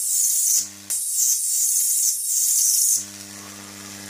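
Electric sparks crackle and hiss loudly.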